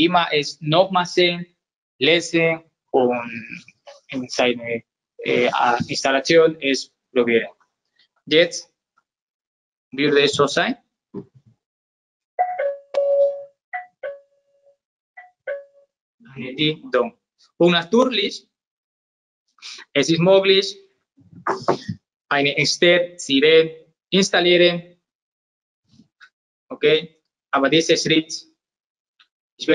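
A young man talks calmly and explains, close by.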